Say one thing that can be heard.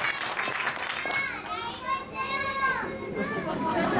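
A young child calls out with animation.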